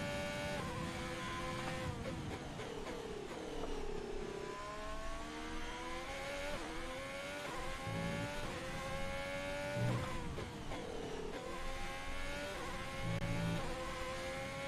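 A racing car engine screams at high revs, climbing in pitch and dropping sharply with each gear change.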